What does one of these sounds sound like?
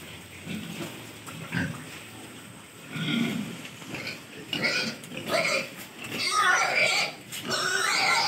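Pigs snuffle and root noisily in feed.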